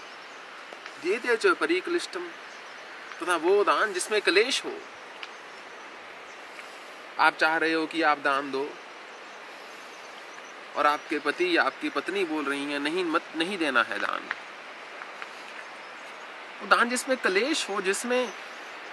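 A man speaks calmly and slowly, with long pauses.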